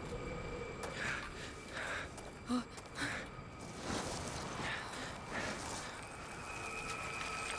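Feet scramble and scrape over rocks.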